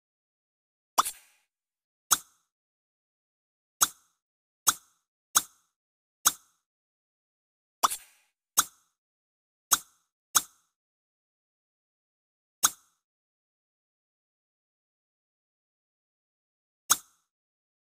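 Short game menu clicks sound as options are chosen.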